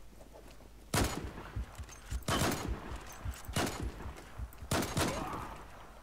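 A scoped rifle fires several sharp shots.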